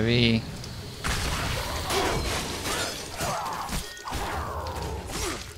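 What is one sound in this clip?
Swords slash and clang in a fast fight.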